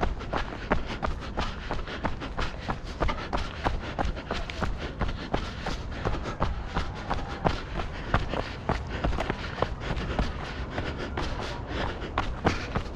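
Wind rumbles across the ground outdoors.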